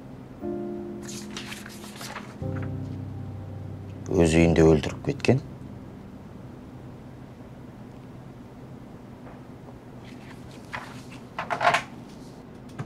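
Paper rustles as a man leafs through pages.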